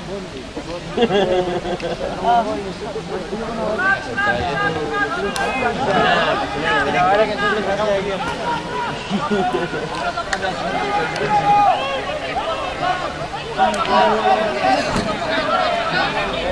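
A crowd of spectators cheers and shouts outdoors.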